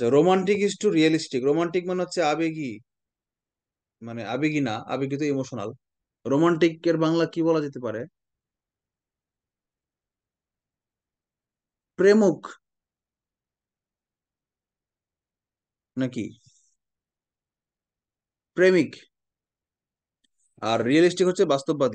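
A man speaks calmly into a microphone, explaining in short bursts with pauses.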